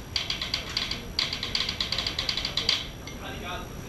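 A drummer plays a fast beat on drums and cymbals.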